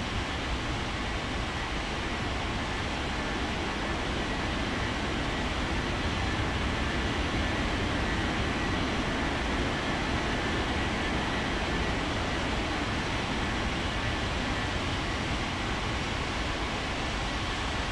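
A jet airliner's engines roar steadily as it takes off and climbs away.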